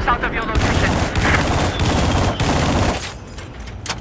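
Rapid gunfire and explosions crack loudly.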